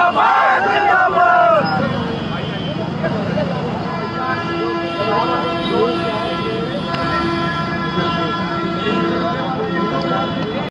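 A crowd of men shout and chant loudly outdoors.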